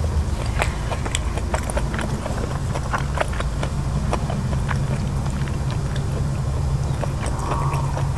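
Fingers pick through crisp leafy food with soft rustling and crackling.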